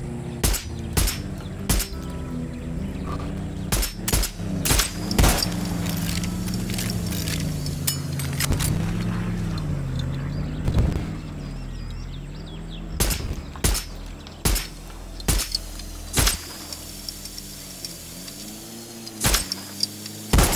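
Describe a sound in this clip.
Sharp rifle shots crack one after another.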